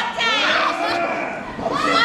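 A young woman cries out in pain close by.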